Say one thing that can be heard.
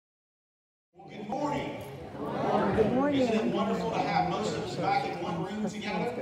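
A man speaks into a microphone, heard through loudspeakers in an echoing hall.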